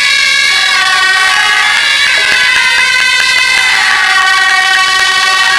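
A group of wind instruments plays a loud, steady tune outdoors.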